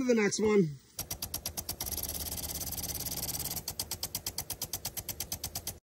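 A lawn sprinkler ticks rapidly as it sprays water.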